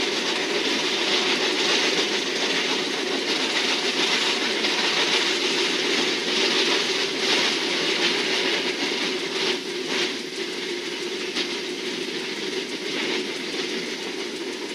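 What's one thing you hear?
Wheels clatter and squeal on the rails.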